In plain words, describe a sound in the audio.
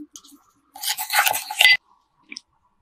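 A spoon stirs sauce in a bowl.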